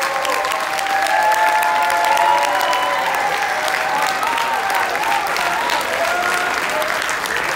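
A group of young men sings together in an echoing hall.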